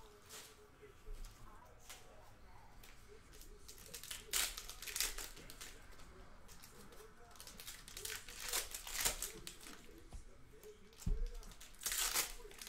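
Plastic card wrappers crinkle and rustle as they are handled.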